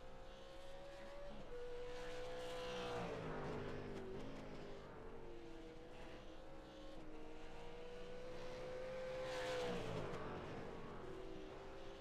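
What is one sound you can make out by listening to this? A race car engine idles with a steady hum, now and then revving briefly.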